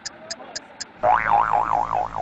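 A truck horn blares loudly.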